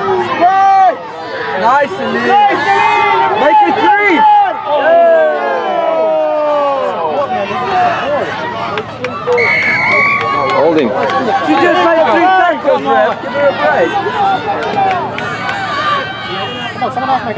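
A large crowd of spectators cheers and shouts outdoors.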